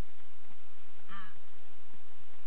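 A penguin squawks nearby.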